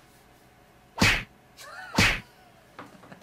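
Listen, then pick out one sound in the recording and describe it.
Hands clap sharply.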